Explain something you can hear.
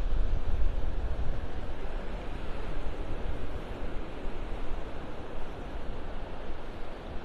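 Wind rumbles across the open air.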